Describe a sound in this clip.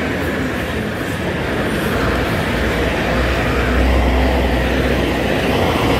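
A heavy dump truck rumbles as it approaches on a paved road.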